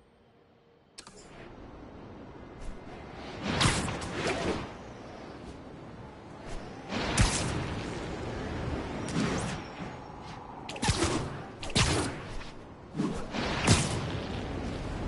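Wind rushes steadily past at speed.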